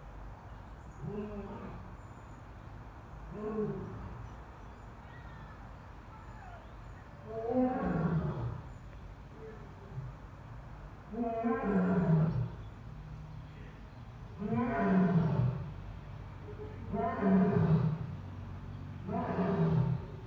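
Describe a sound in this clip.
A lion roars in a series of deep, rising grunts that grow louder and longer.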